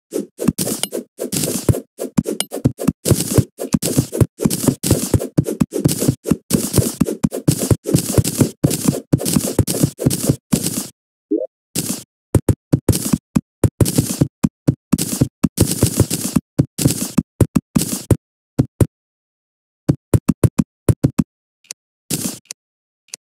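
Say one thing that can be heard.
Game sound effects of digging and chopping tap in quick bursts.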